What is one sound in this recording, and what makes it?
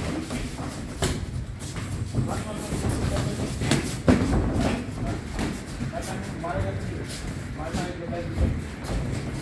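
Boxing gloves thump in quick punches.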